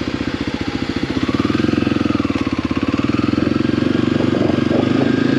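A motorcycle engine revs and pulls away on gravel.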